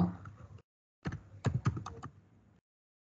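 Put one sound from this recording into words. Keys click as someone types on a keyboard.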